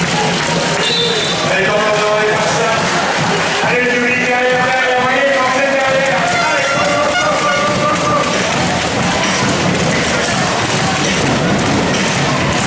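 A crowd cheers and chatters loudly in a large echoing arena.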